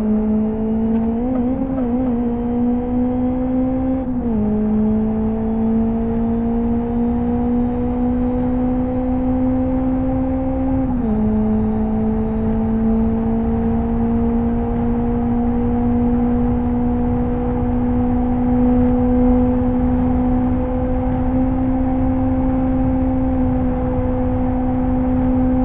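A racing car engine drones loudly at high revs, rising steadily and dropping briefly at gear changes.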